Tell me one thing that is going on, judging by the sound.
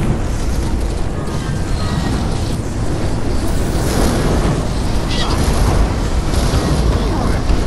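Magic blasts crackle and whoosh in quick succession.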